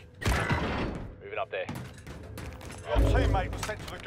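A rifle fires loud sharp shots.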